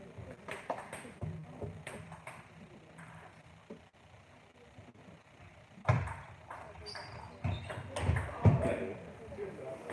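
Sneakers squeak and thump on the floor as players move.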